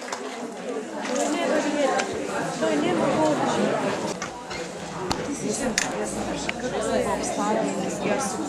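Men and women chatter among themselves.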